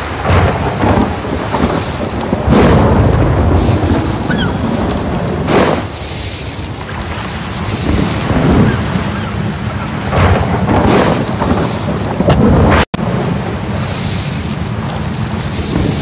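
Ocean waves wash gently onto a beach.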